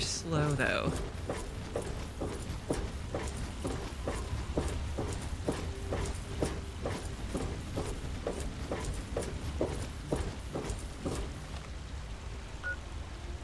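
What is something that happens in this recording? Footsteps clank steadily on a metal walkway.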